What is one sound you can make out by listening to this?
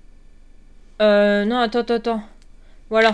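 A young woman speaks close to a microphone, drawing out her words with animation.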